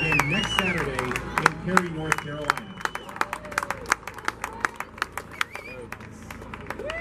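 Young men clap their hands rapidly.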